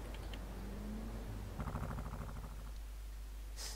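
A quad bike engine starts up and idles.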